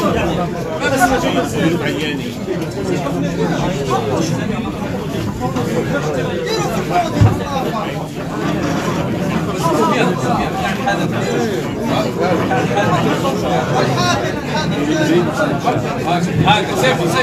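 A large crowd chants and cheers outdoors.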